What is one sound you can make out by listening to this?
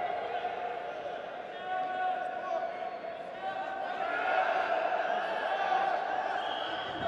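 Spectators cheer and shout in a large echoing hall.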